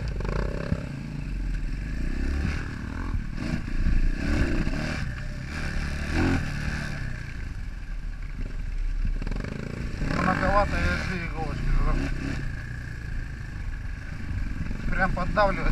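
A dirt bike engine roars up close, revving up and down.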